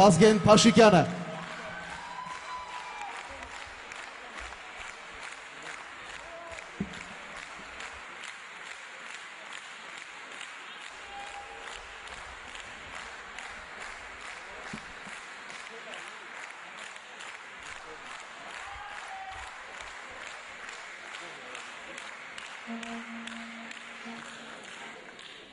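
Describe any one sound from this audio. An audience claps along in a steady rhythm in a large hall.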